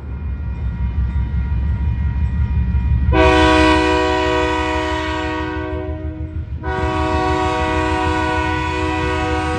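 A diesel locomotive engine rumbles deeply and steadily nearby.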